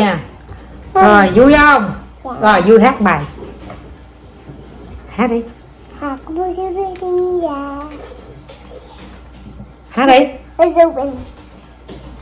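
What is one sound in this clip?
A toddler babbles and talks in a high voice.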